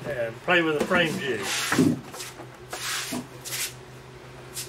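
A wooden box knocks and scrapes on a table.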